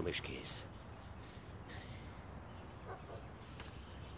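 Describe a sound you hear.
A man speaks in short, quiet phrases.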